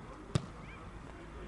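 A football thuds off a boot.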